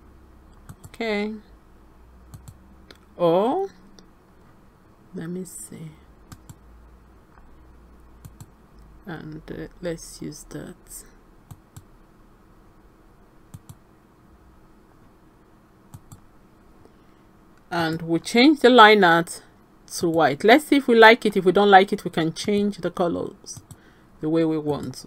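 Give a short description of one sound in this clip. A woman speaks calmly into a close microphone, in short bursts with pauses.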